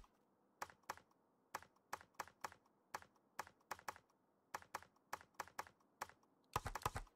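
A video game menu gives short clicks as the selection moves.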